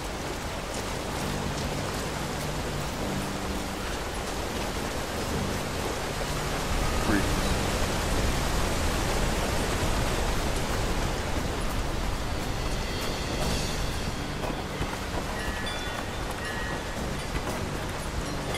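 A waterfall roars close by.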